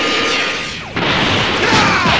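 A rushing whoosh of a fast dash sweeps past.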